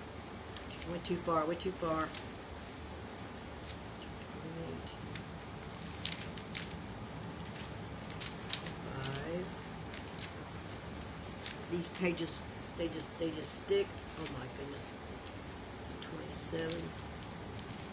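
An elderly woman speaks quietly and close by, in short bursts.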